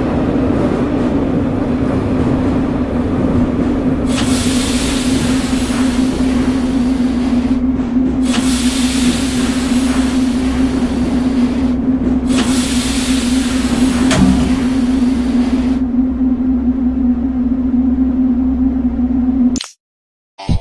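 A train's wheels rumble and rattle on the rails.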